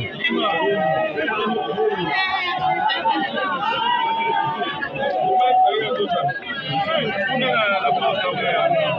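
A crowd of men and women talks and shouts close by.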